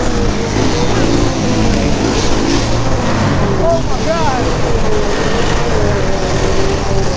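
A motorbike engine roars loudly close by.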